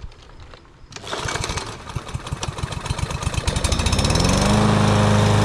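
A lawn mower engine sputters, then catches and starts.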